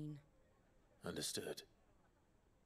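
A man answers briefly in a low voice.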